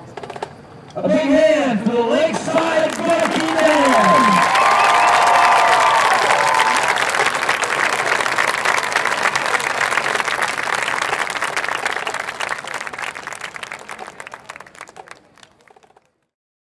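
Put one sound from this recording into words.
A marching band plays loudly outdoors, with brass swelling and then fading away.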